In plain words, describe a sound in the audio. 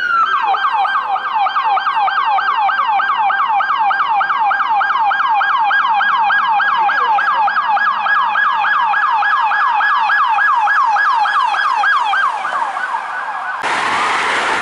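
A police siren yelps rapidly up close.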